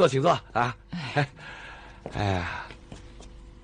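A middle-aged man speaks politely and warmly.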